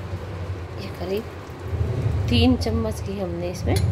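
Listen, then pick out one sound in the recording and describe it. A spoon taps against a metal pan.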